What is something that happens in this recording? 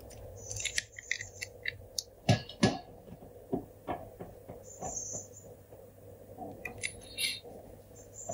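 A phone clicks and clacks against a hard surface as it is handled.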